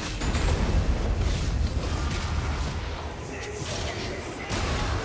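Video game combat effects whoosh and crackle.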